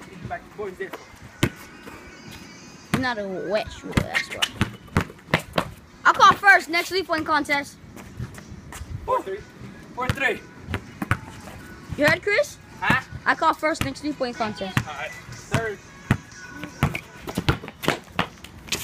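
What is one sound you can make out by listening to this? A basketball bounces on hard pavement with sharp thuds.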